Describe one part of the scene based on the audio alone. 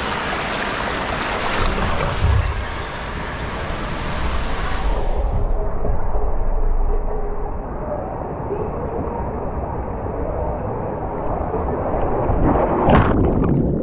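Water rushes and rumbles down a slide around the rider.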